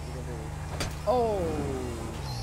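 A motorcycle crashes with a loud thud.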